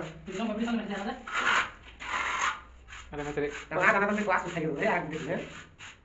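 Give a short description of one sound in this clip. A trowel scrapes wet mortar across a floor.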